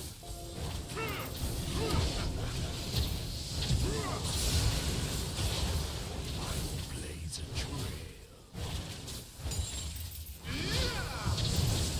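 Weapon blows land with short thuds and clangs.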